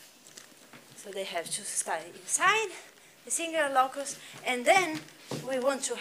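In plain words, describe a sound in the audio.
A young woman speaks calmly, lecturing.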